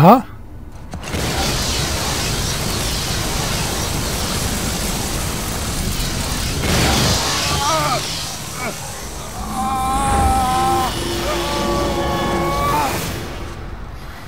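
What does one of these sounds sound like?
A loud rushing roar of energy swells and keeps going.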